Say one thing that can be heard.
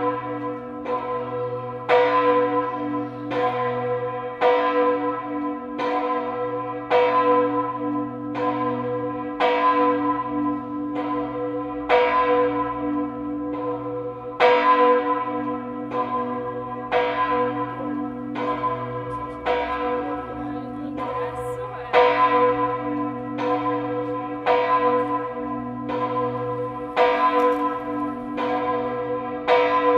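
Church bells ring out from a tower, in a steady peal of overlapping strokes that each ring on and fade.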